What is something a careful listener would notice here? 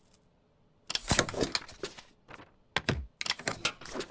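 A rubber stamp thumps down onto paper.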